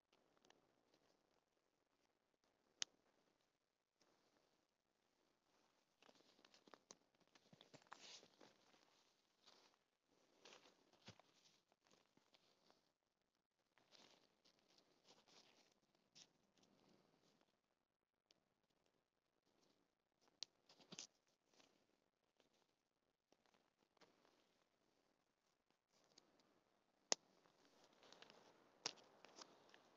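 Fabric rustles and flaps as it is pulled and adjusted.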